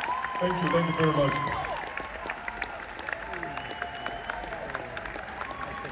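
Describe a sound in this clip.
A crowd cheers and whistles loudly in a large echoing hall.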